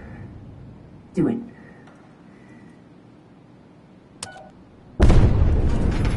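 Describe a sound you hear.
A handheld detector beeps softly.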